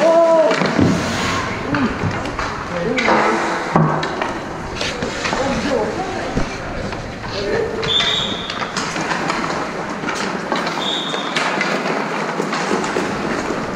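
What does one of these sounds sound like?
Hockey sticks clack against pucks and the ice.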